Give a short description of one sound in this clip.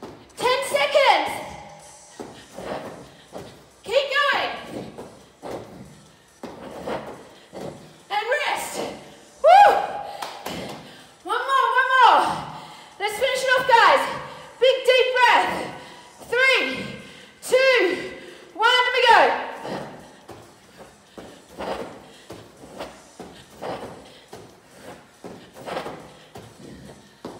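A woman talks with animation, slightly out of breath.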